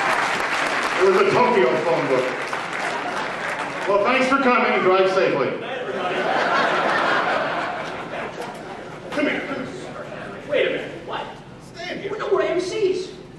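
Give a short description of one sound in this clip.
An elderly man speaks with animation through a microphone in a large room.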